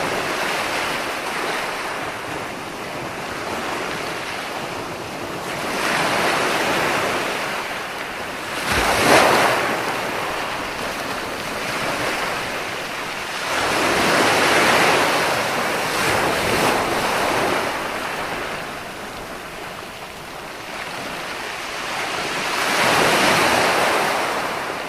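Waves break and wash up onto a beach in rolling surges.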